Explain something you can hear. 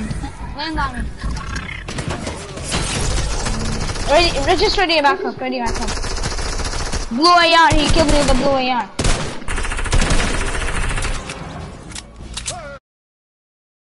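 Video game gunfire and effects play.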